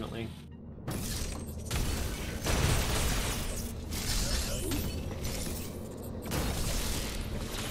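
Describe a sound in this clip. Game blasts and explosions sound in rapid bursts.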